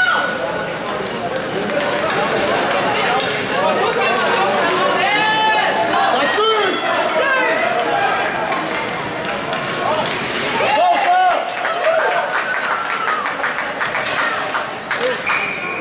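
Young children shout excitedly in an echoing rink.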